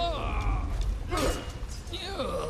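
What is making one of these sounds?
A sword slashes and strikes a body.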